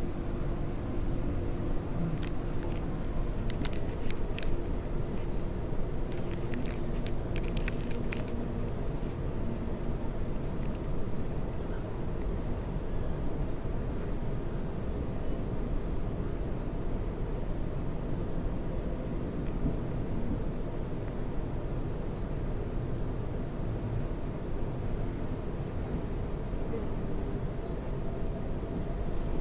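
A train rumbles steadily along its track, heard from inside a carriage.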